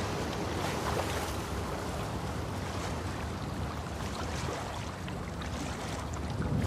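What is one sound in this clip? Water splashes steadily as someone swims.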